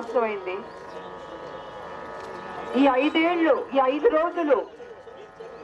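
A young woman speaks forcefully into a microphone through loudspeakers, outdoors.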